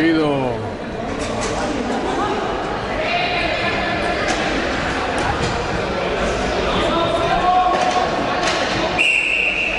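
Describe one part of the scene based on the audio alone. Hockey sticks clack against a ball and each other on a hard floor.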